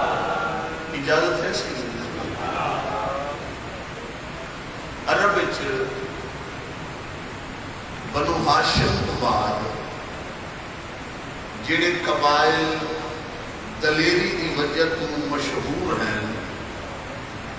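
A man speaks passionately into a microphone, heard through loudspeakers in an echoing hall.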